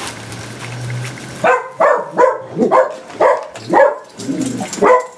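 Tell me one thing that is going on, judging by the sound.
Stiff mesh ribbon rustles and crinkles as hands handle it.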